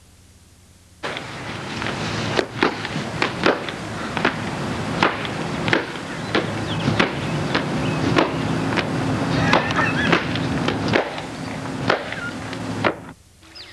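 A stick swishes and thwacks against a hedge.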